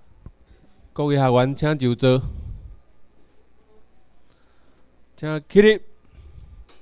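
A man speaks loudly nearby.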